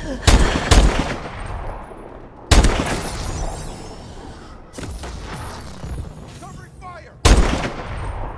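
Sniper rifle shots crack loudly, each followed by a ringing echo.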